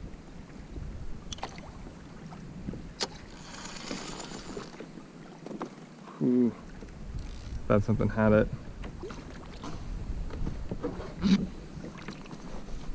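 Water laps gently against a kayak's hull.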